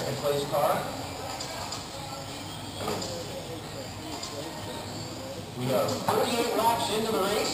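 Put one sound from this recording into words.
Small electric motors of remote-control cars whine and rev as the cars race past.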